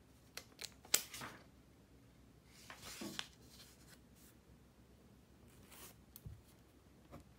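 Paper rustles as pages are lifted and turned.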